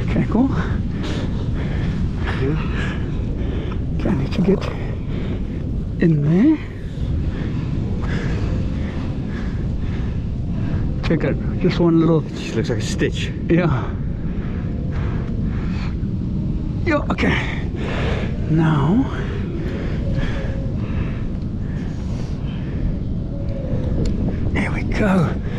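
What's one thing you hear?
A seal growls and moans in bursts.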